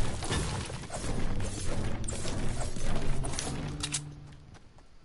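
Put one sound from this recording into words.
A pickaxe strikes a brick wall over and over.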